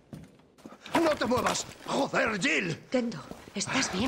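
A middle-aged man shouts in alarm.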